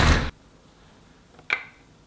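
Plastic parts click together.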